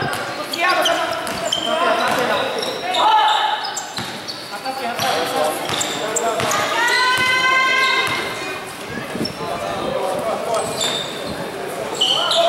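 Spectators shout and cheer, echoing in a large hall.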